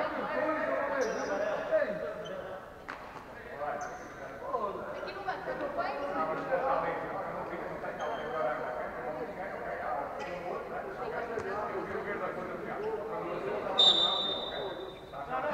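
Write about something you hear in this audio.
Sneakers squeak sharply on the hard floor.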